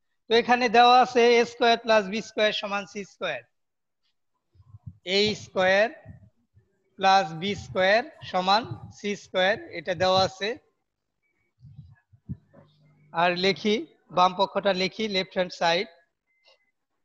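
A man speaks calmly into a headset microphone, close by.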